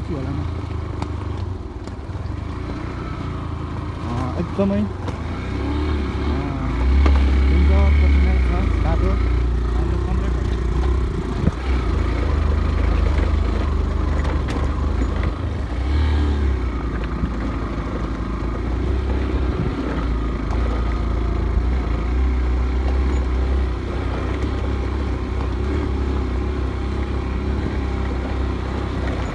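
A motorcycle engine rumbles steadily at low revs.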